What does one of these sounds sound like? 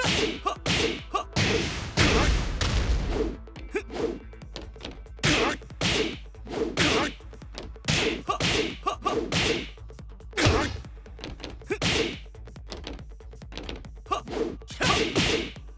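Punches and kicks land with sharp, heavy thuds in quick bursts.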